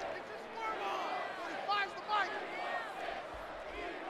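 Football players' pads clash as they collide in a tackle.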